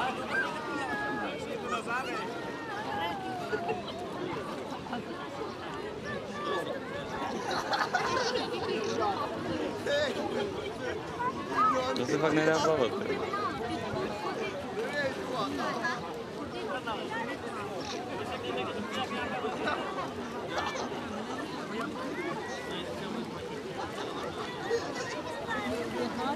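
A crowd of people chatter and call out in the open air.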